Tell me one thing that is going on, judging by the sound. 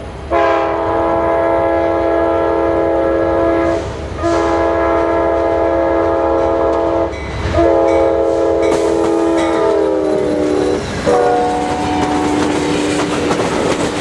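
A train horn blares in long blasts, its pitch dropping as the train passes.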